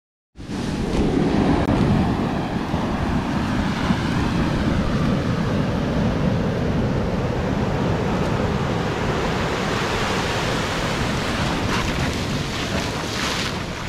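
Waves wash and fizz over sand.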